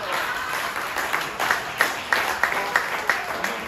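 A man claps his hands close by.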